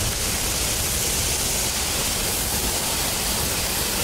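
A steam locomotive chugs along a track.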